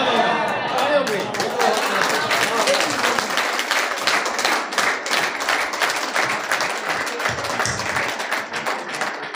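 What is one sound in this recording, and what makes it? People clap their hands rapidly.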